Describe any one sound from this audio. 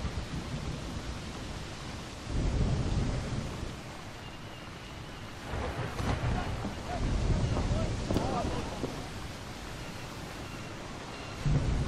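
Sea waves wash and surge.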